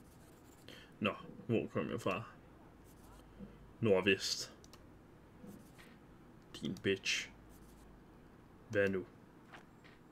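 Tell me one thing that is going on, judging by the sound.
A man speaks calmly and close to a microphone, in short phrases.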